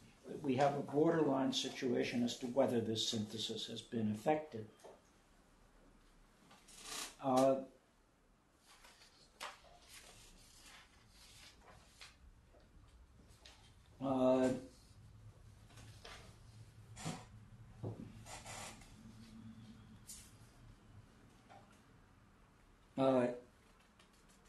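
An elderly man speaks calmly and haltingly, close by.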